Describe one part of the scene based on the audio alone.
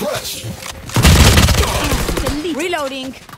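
An automatic rifle fires a rapid burst in a video game.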